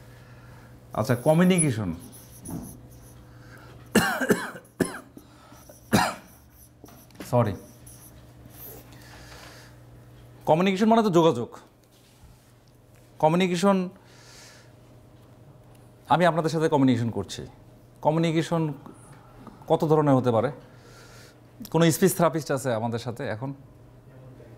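A man speaks slowly and clearly, pausing between phrases.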